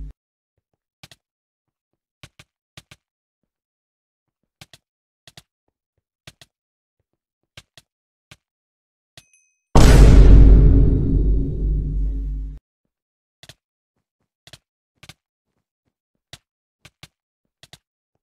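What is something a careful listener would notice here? Blocky game punches land with short soft thuds.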